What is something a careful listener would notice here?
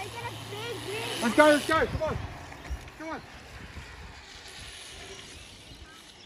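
Bicycle tyres roll and hum over smooth pavement.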